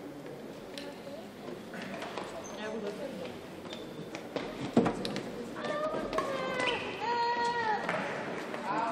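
Sports shoes squeak on the court floor.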